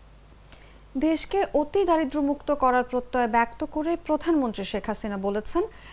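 A young woman reads out calmly through a microphone.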